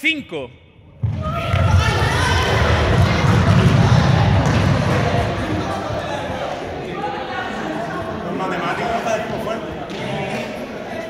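A crowd of young people cheers and shouts excitedly.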